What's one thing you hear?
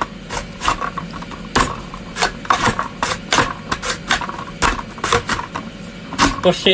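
A plastic vegetable chopper clacks and crunches as it is pressed down again and again.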